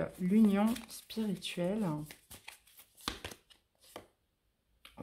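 Playing cards are shuffled with soft flicking.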